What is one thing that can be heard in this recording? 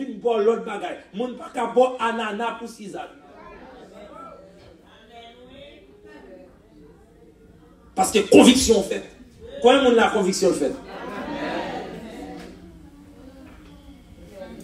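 A man preaches with passion through a loudspeaker in an echoing hall.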